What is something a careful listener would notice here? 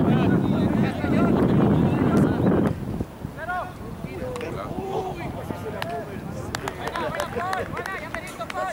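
A soccer ball is kicked with a dull thump.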